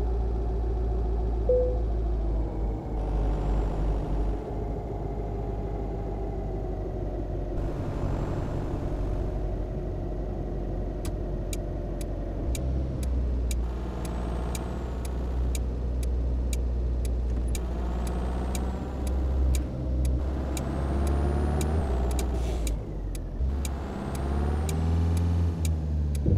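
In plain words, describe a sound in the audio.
A car engine hums steadily, its pitch rising and falling as the car speeds up and shifts gears.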